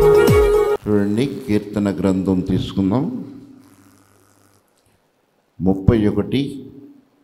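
An elderly man speaks with feeling into a microphone.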